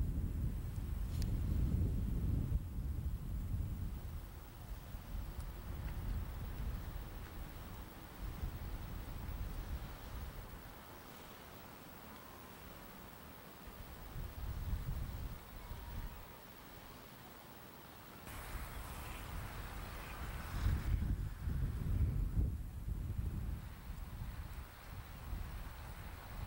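Wind gusts buffet the microphone outdoors.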